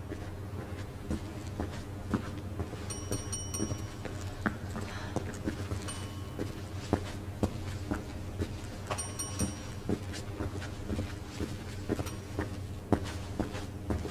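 Footsteps walk steadily across a hard floor in a large, echoing room.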